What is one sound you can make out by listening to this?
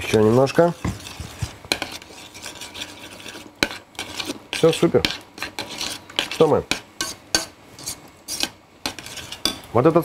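A spoon scrapes and clinks against a pot.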